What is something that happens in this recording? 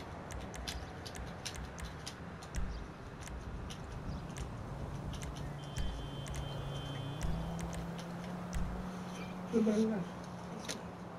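Soft menu clicks tick repeatedly.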